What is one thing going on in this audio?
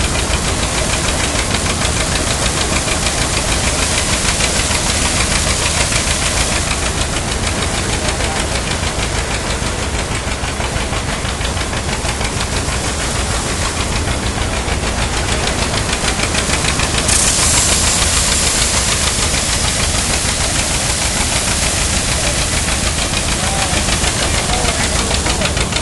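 A threshing machine rattles and clatters loudly and steadily nearby.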